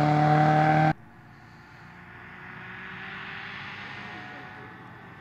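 A car engine hums faintly in the distance.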